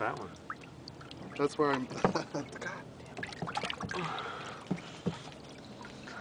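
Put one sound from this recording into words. Water splashes as fish thrash at the surface.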